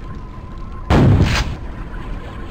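A shotgun fires with a loud blast.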